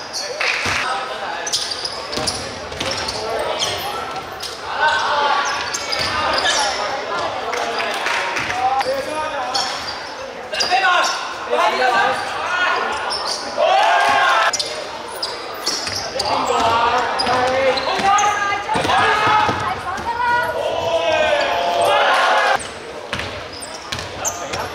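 Sneakers squeak sharply on a court.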